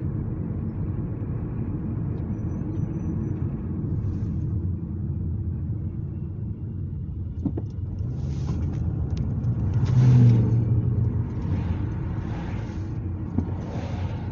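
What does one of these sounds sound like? A car engine hums steadily.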